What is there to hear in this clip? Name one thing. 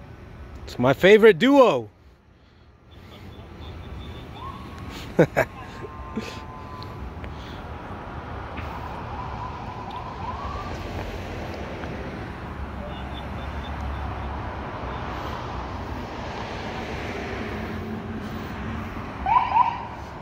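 A police siren yelps briefly and loudly nearby.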